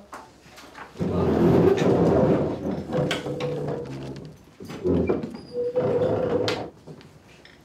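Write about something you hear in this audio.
Fabric rustles loudly as a jacket is pulled on close by.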